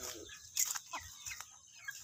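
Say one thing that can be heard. A chicken flaps its wings.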